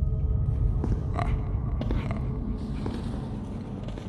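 Slow footsteps thud on a wooden floor.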